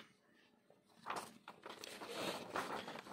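Paper sheets rustle as a page is turned.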